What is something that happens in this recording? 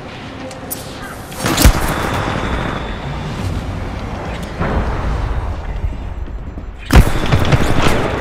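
Gunfire rattles in short bursts.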